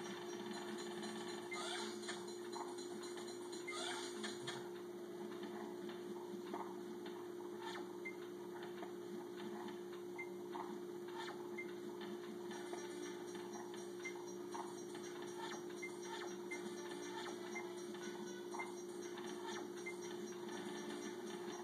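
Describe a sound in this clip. Electronic game music plays through a television speaker.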